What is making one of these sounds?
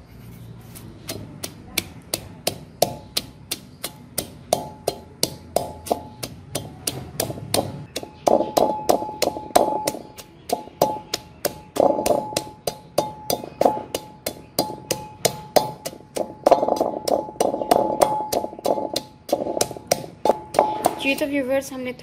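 A wooden pestle pounds in a mortar with quick, steady thumps.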